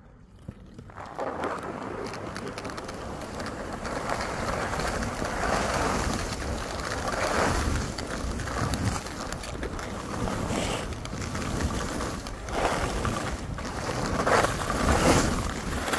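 Skis hiss and scrape steadily over snow, close by.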